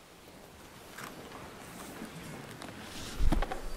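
Pages of a book rustle close to a microphone.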